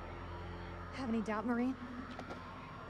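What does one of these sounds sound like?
A young woman answers with a short, taunting question.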